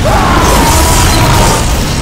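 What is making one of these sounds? A sword slashes into a body with a wet thud.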